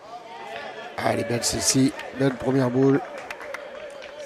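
A crowd of spectators cheers and applauds loudly.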